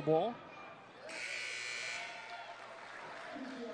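A crowd in a large echoing gym cheers briefly.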